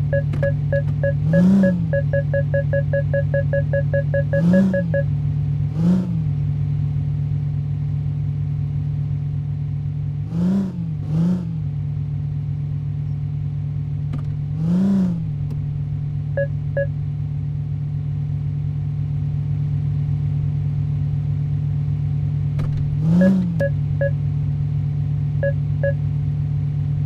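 A car engine hums steadily at low revs.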